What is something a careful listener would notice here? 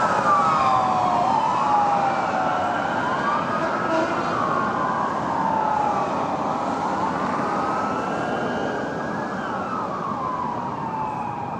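Several emergency sirens wail together, rising and falling as they drive away.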